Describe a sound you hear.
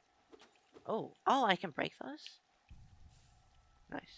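Soft magical chimes ring out.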